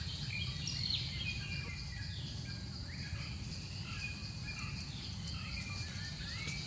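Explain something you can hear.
Dry leaves rustle under a small monkey's feet.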